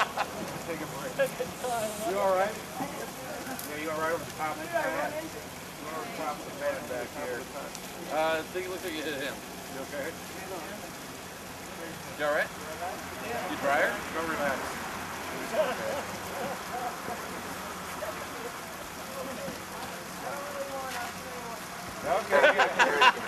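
Several men talk to each other outdoors, close by.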